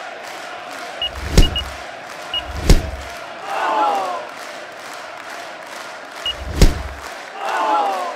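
A man throws quick punches that swish through the air.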